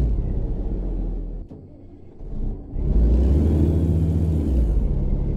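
A truck engine rumbles low, dips quiet briefly, then roars louder.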